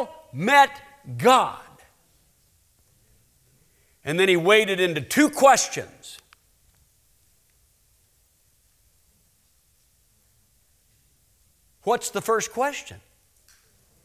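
A middle-aged man speaks with animation through a microphone in a large hall, pausing between phrases.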